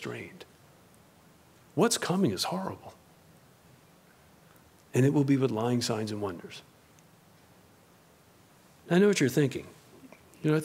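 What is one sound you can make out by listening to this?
A man speaks calmly into a microphone in a slow, measured way, with long pauses.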